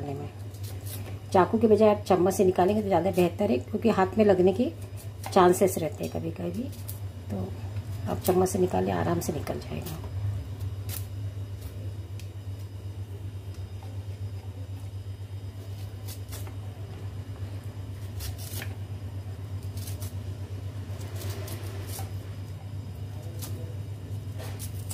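A knife scrapes the skin off a stalk of vegetable.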